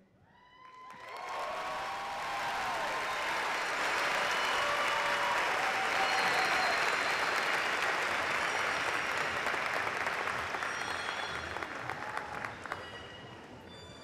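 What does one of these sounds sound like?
A large crowd applauds and cheers in a big echoing hall.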